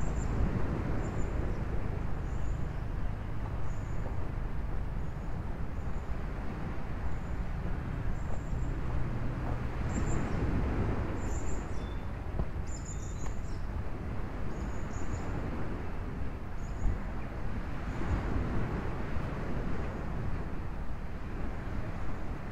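Wind blows outdoors and rustles through tree leaves.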